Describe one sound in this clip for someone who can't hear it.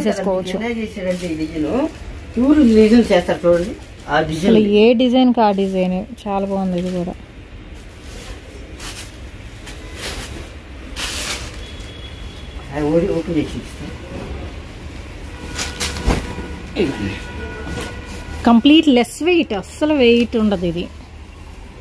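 A man speaks close by in a brisk, lively way.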